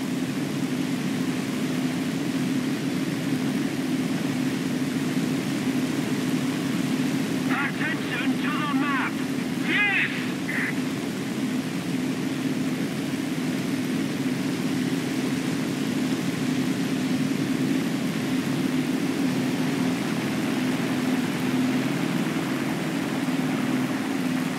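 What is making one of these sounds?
Twin propeller engines drone steadily and loudly.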